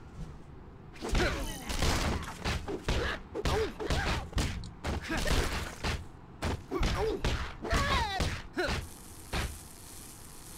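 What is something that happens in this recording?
Punches and kicks thud in a video game fight.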